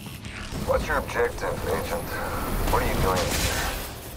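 A smoke grenade bursts and hisses loudly.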